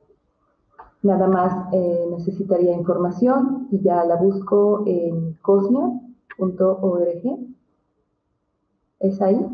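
A middle-aged woman speaks calmly through an online call.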